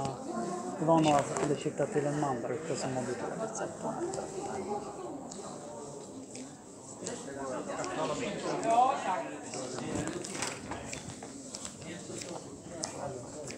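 Voices murmur in a large echoing hall.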